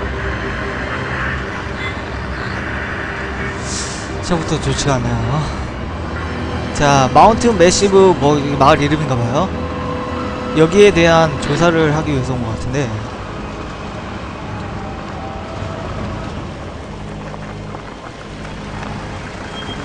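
A car engine hums steadily while driving slowly.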